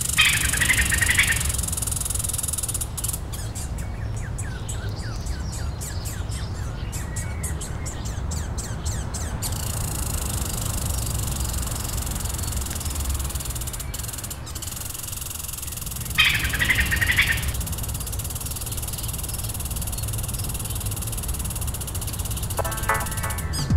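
A squirrel gnaws at tree bark.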